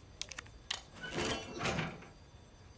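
Bolt cutters snap through a metal chain.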